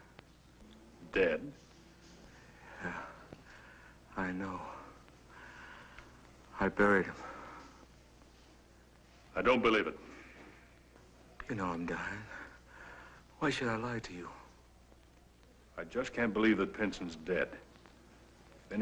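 A man speaks calmly and seriously.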